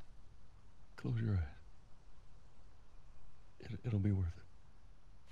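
A man speaks in a low, tired voice close by.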